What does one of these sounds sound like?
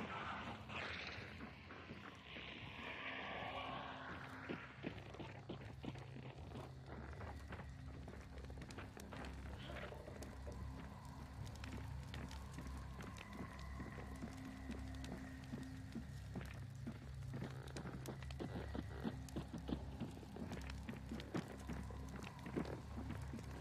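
Footsteps thud slowly across a creaking wooden floor.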